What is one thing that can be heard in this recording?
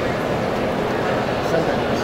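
Hands press soft dough on a metal counter.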